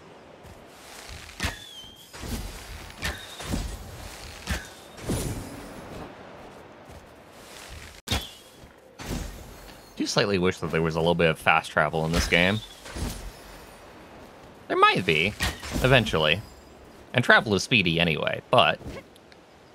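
Quick footsteps rustle through tall grass.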